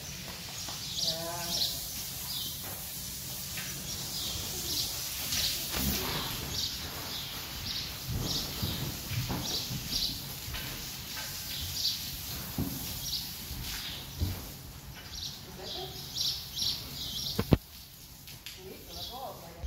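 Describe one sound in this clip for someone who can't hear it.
A young woman talks softly and warmly to a horse.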